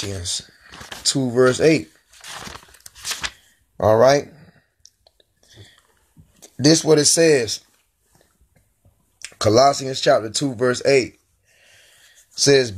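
A man speaks calmly and close up, in short phrases with pauses.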